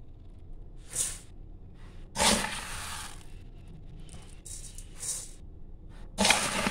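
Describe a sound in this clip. Soft fur brushes and rustles close against the microphone in short bursts.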